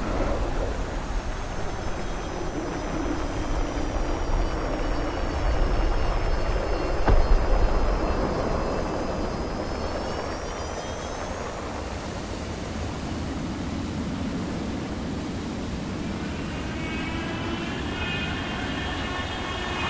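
A jet engine's whine rises and falls in pitch.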